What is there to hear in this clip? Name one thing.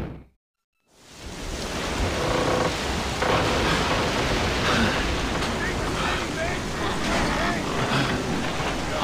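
Strong wind and rough waves roar steadily.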